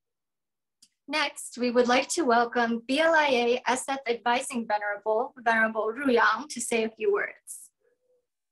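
A young woman speaks cheerfully and close up, heard through an online call microphone.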